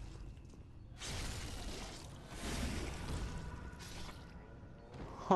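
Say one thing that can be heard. A heavy blade slashes and strikes.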